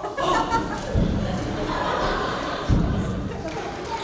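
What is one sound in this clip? Bodies thump heavily onto a stage floor.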